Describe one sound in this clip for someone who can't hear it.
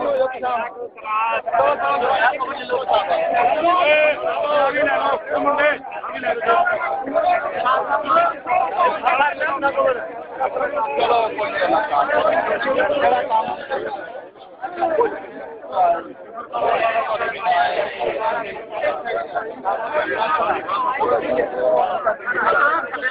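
A group of men talk loudly over one another close by.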